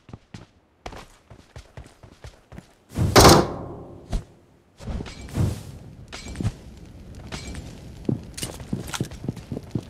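Footsteps thud quickly across grass and dirt.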